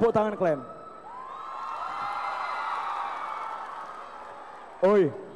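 A large crowd cheers and sings along.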